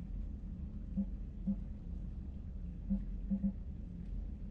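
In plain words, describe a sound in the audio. Short electronic menu beeps sound a few times.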